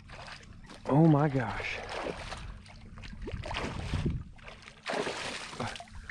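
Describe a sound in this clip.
A fish thrashes and splashes in the water.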